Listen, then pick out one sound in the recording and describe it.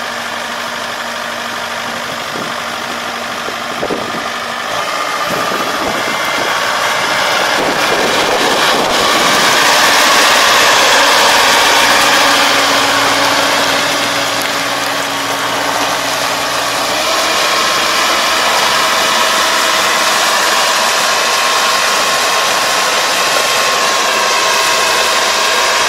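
A combine harvester's engine drones steadily close by, growing louder as it passes.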